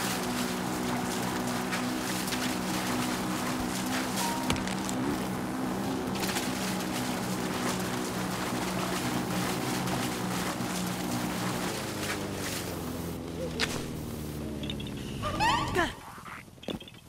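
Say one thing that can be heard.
A motorbike engine drones steadily, then winds down and cuts out.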